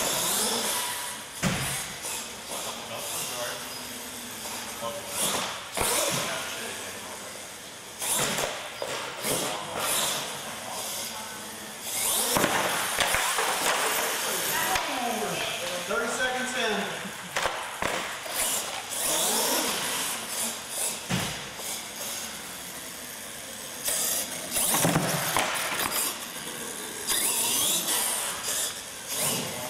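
A small electric motor whines as a toy truck races across a hard floor.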